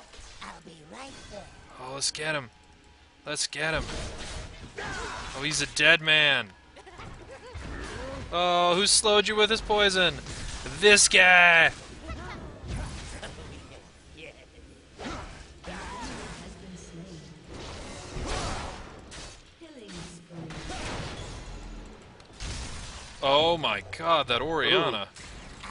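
Spells whoosh and crackle.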